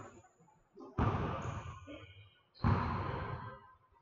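A basketball thuds on the hard floor.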